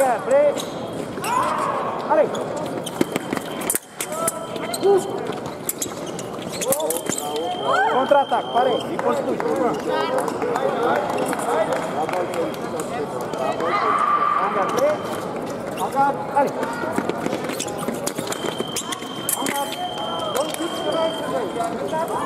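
Fencers' shoes squeak and thump on the floor.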